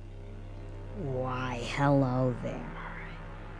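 A huge beast lets out a deep, loud roar.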